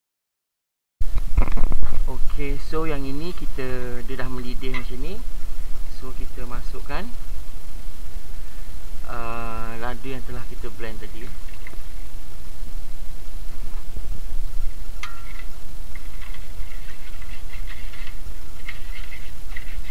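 A metal spatula scrapes and stirs in a metal wok.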